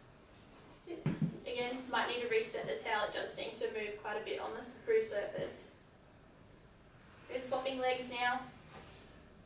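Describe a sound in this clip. A young woman speaks calmly and clearly nearby.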